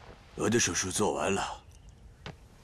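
A middle-aged man speaks.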